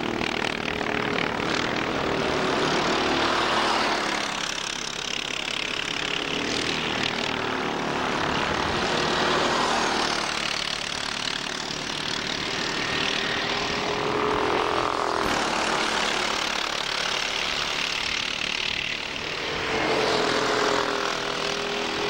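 Kart engines buzz loudly, rising and falling in pitch as the karts pass by outdoors.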